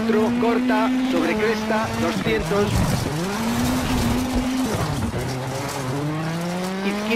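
A rally car engine revs and roars, rising and falling as the gears change.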